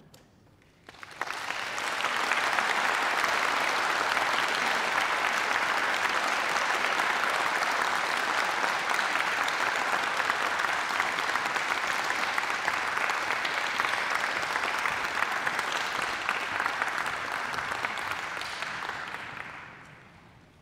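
An audience applauds steadily in a large hall.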